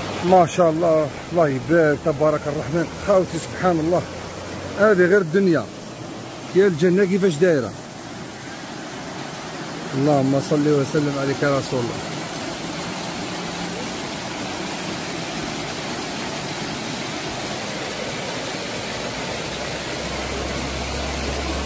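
A shallow stream babbles and splashes over stones.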